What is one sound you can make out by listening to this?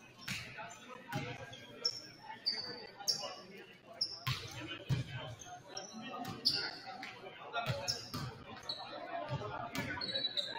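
Sneakers squeak on a hard floor in a large echoing gym.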